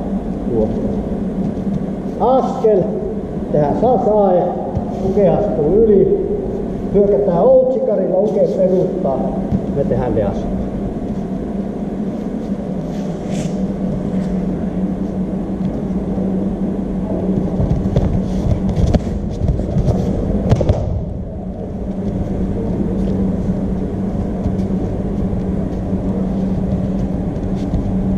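Bare feet shuffle and scuff on a soft mat.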